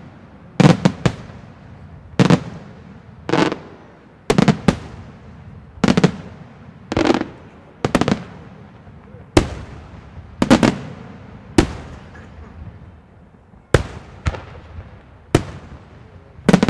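Fireworks burst with loud booming bangs that echo away.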